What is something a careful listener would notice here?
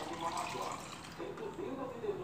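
Juice pours into a metal cup.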